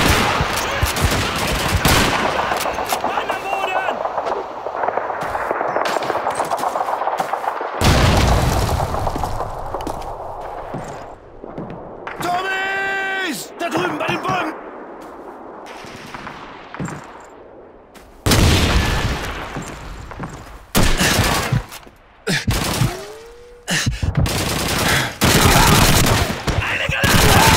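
Gunshots crack and boom nearby.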